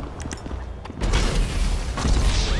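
A loud explosion roars and crackles.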